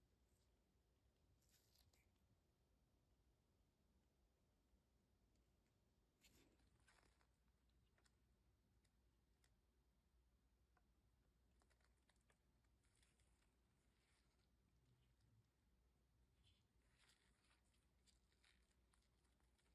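Small plastic parts click and rustle softly as they are handled.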